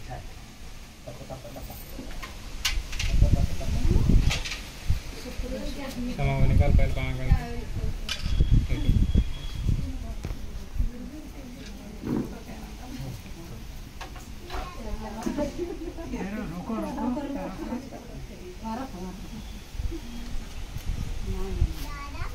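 Several men and women talk and murmur nearby, outdoors.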